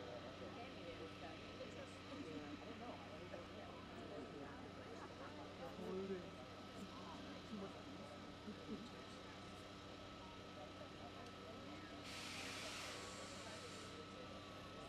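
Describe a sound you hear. A crowd of men and women chatters outdoors at a distance.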